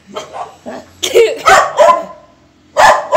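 A dog howls nearby.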